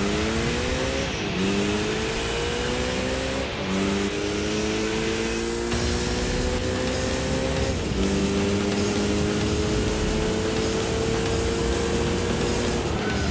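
A car engine revs up through the gears, dropping in pitch at each gear change.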